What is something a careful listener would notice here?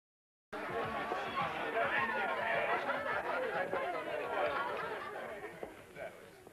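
A crowd chatters loudly in an echoing room.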